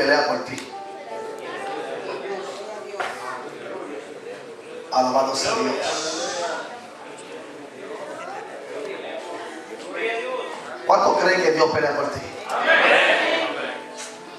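A man preaches with animation through a microphone and loudspeakers in an echoing room.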